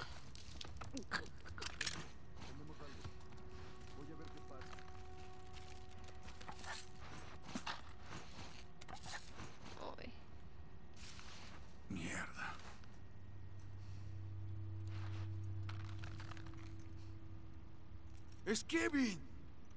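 Footsteps shuffle softly over scattered debris.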